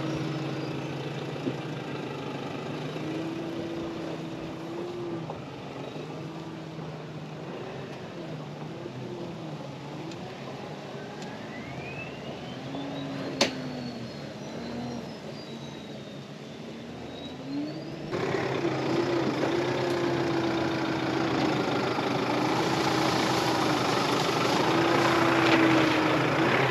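A four-wheel drive engine labours and revs as it climbs.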